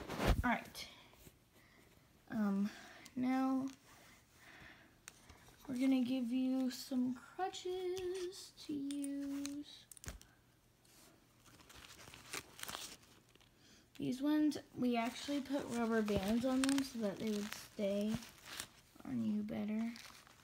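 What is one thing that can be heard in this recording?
Dolls rustle softly against a fabric bedcover.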